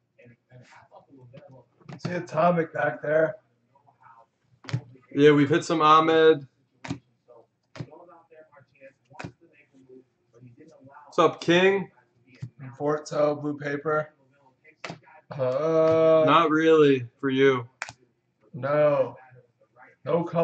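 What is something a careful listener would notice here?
Trading cards rustle and flick as they are shuffled through by hand.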